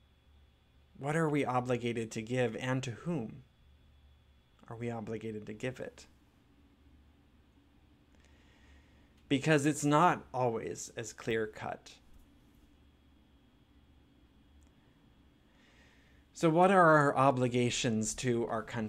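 A man speaks calmly and expressively into a nearby microphone, with pauses between phrases.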